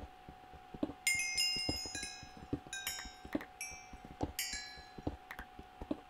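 Items pop as they are picked up in a video game.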